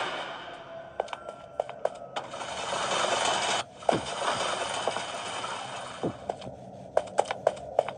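Fingers tap lightly on a glass touchscreen.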